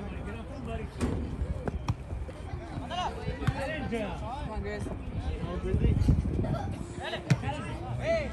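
A soccer ball is kicked with a dull thump.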